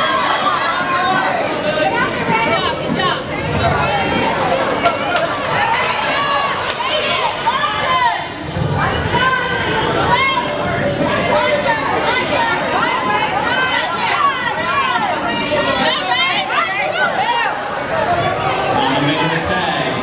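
A crowd of children and adults chatters and shouts in a large echoing hall.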